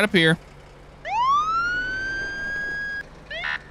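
A siren wails, rising in pitch.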